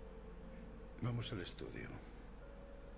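An elderly man speaks quietly.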